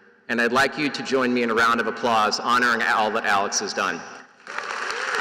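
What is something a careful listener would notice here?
A man speaks through a microphone, his voice echoing in a large hall.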